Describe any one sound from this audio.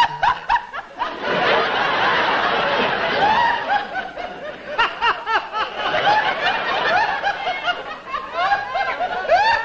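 A group of people laugh together.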